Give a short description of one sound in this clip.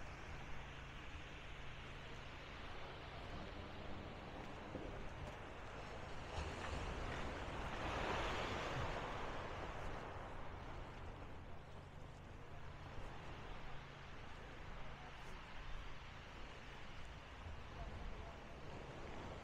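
Small waves wash and splash against a stone sea wall outdoors.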